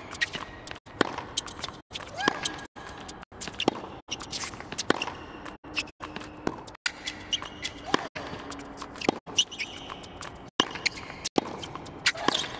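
A tennis ball is struck with a racket again and again.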